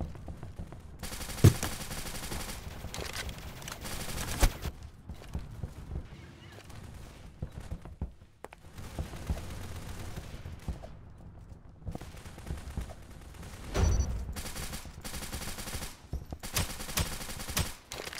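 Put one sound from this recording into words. Rifle gunfire fires in rapid bursts.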